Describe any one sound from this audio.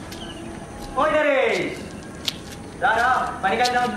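A young man calls out loudly outdoors.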